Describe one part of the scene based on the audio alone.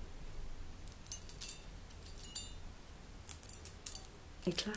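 Thin metal wires tick and tinkle together.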